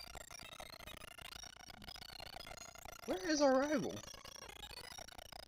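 Bright chiptune game music plays steadily.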